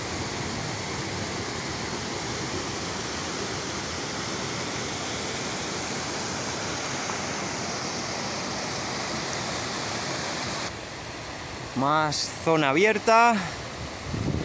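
A stream rushes and splashes steadily over rocks.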